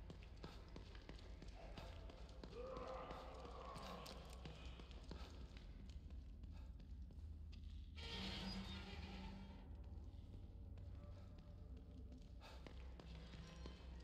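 Footsteps crunch on a gritty stone floor.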